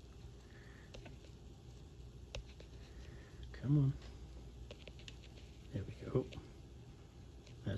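A sheet of paper rustles and crinkles softly.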